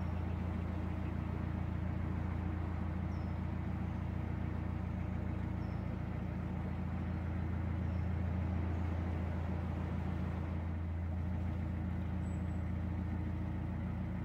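A boat's diesel engine chugs steadily at low speed.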